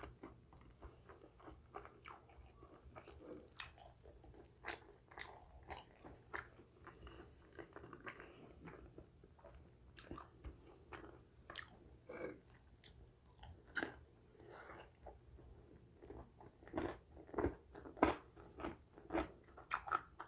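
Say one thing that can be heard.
A woman chews crunchy food close to a microphone.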